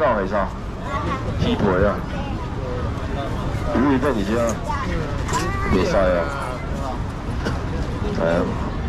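A man talks loudly nearby, calling out.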